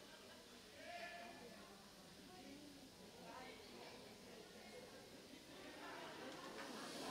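A middle-aged woman talks nearby.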